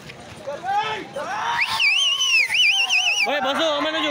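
A man shouts loudly close by.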